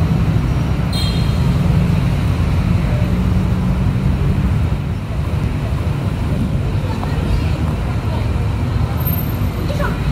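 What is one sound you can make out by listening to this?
People murmur and chatter in a busy street.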